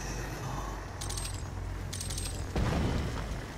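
A short electronic chime rings as ammunition is picked up.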